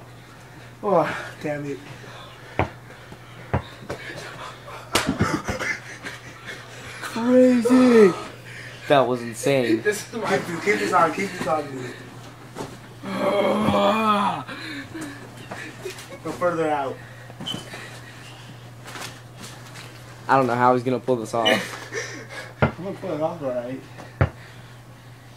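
A ball bounces on the floor.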